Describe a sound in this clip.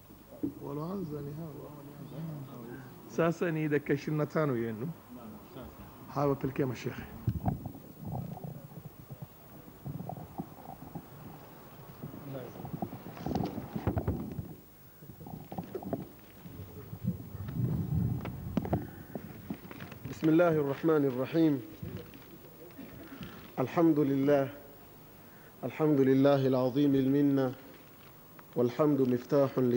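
A man speaks steadily into a microphone, heard through a loudspeaker in an echoing room.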